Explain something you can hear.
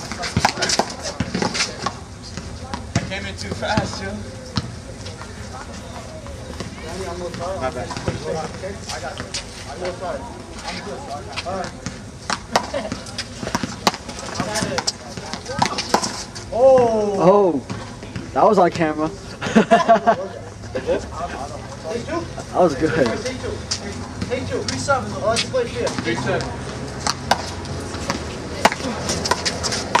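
A rubber ball smacks against a wall and bounces off the ground, outdoors.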